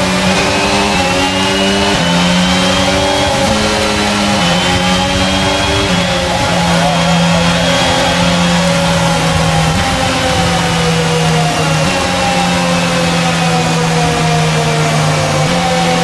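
A racing car engine whines loudly, rising and falling in pitch as gears change.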